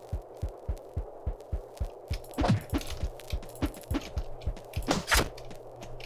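Gunfire thuds rapidly and steadily.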